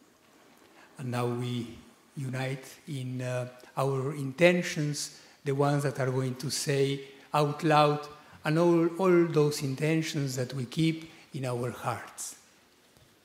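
A choir of women sings together into microphones in a large echoing hall.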